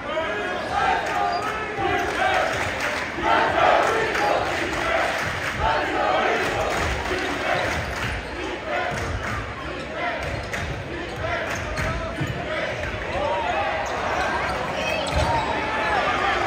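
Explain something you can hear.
A large crowd cheers and chants loudly in an echoing gym.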